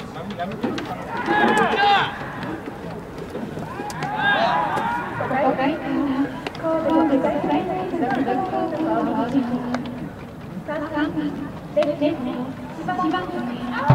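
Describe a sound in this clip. A crowd of spectators chants and cheers in an open stadium.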